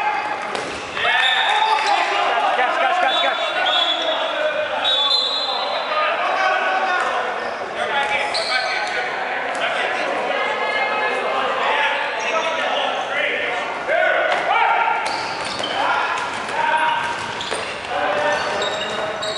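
Balls thud and bounce on a wooden floor.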